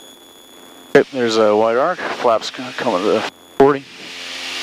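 A man speaks through a headset intercom.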